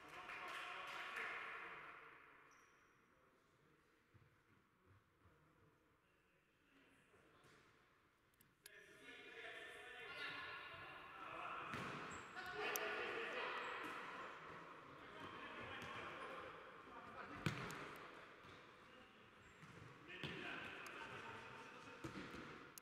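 Players' shouts echo around a large indoor hall.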